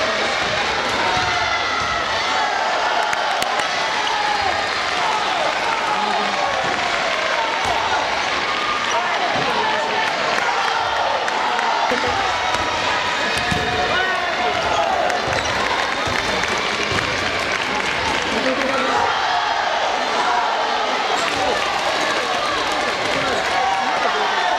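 A crowd of young men cheers and shouts loudly in an echoing hall.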